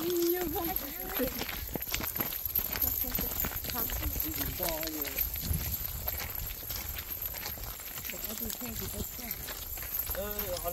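Young women chatter and laugh nearby.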